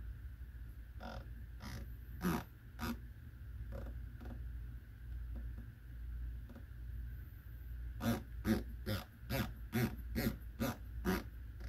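A scope turret clicks sharply as it is turned by hand.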